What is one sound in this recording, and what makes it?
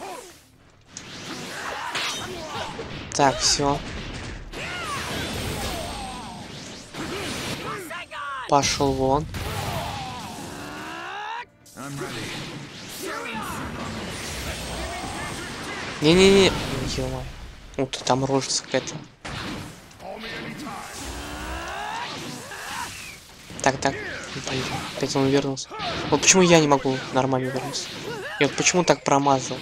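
Energy blasts roar and whoosh.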